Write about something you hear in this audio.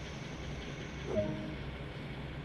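Train brakes squeal briefly.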